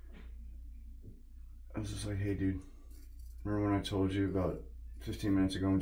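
A razor scrapes across stubble.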